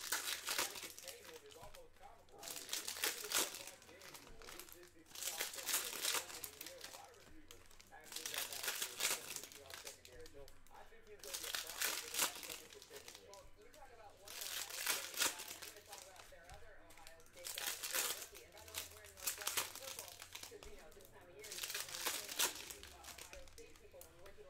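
Foil wrappers crinkle and tear as packs are opened.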